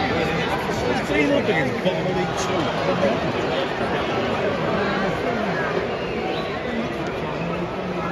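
A large crowd chants and shouts loudly in an open stadium.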